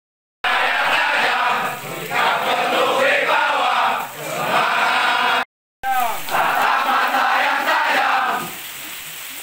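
A large group of men chants loudly in unison outdoors.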